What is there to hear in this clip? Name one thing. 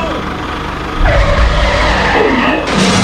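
A toy tractor crashes over onto its side.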